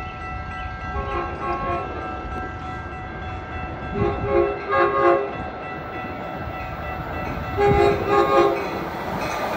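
A train horn sounds in several long blasts from a distance, growing louder.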